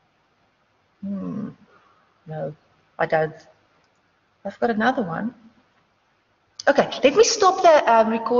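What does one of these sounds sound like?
A young woman speaks calmly in short phrases through a microphone.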